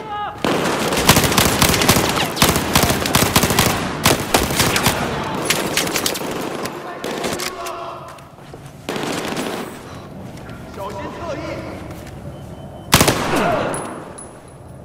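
Rapid gunfire bursts loudly in an echoing space.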